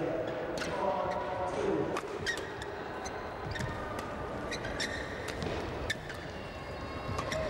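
Rackets strike a shuttlecock back and forth in a rally.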